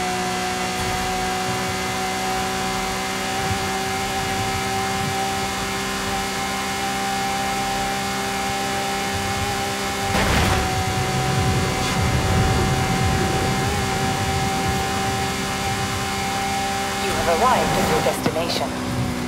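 A sports car engine roars steadily at very high speed.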